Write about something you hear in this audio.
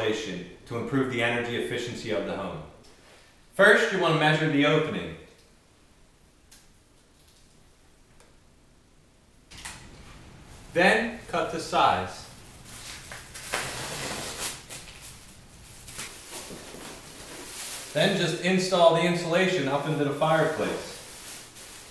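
A man speaks calmly to the listener, close by.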